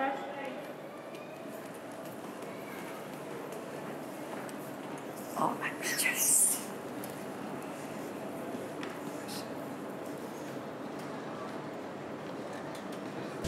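Footsteps tap on stairs.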